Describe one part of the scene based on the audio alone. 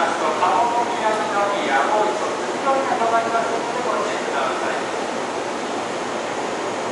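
A train rolls slowly out of a tunnel toward the listener.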